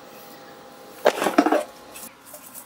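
An air fryer basket slides out with a scrape.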